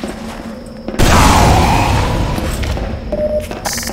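A rocket explodes with a loud, close blast.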